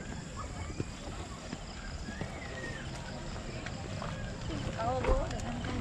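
Stroller wheels roll over gravel.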